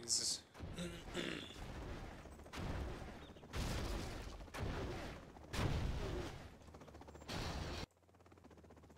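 Guns fire in quick bursts.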